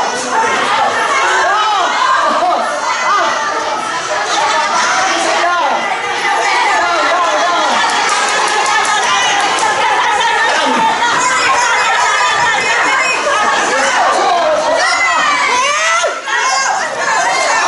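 A crowd of women chatter, shout and laugh close by in a large echoing hall.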